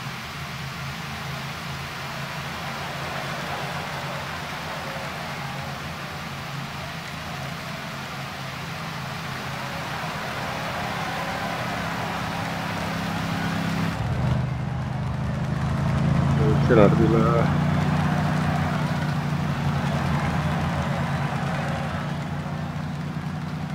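A crowd cheers along the roadside.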